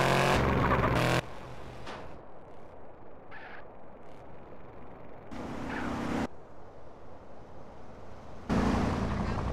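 A car engine hums steadily as a vehicle drives along.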